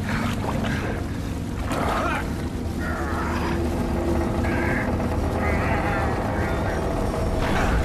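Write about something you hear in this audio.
Water splashes and sprays loudly.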